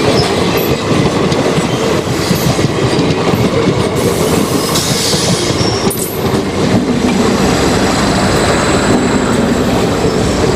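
A freight train rumbles past close by, wheels clattering loudly on the rails.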